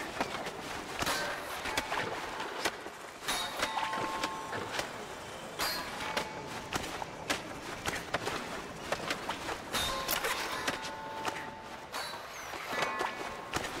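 Short bright chimes ring out as points are scored.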